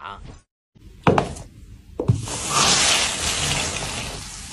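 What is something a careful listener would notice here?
A shoe heel presses down and crushes a soft, wet block with a squelching, crackling sound.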